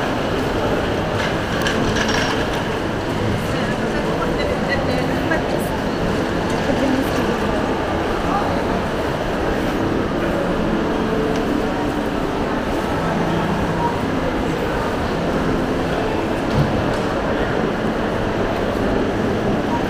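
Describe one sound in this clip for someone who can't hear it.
A crowd of shoppers murmurs and chatters in a large echoing hall.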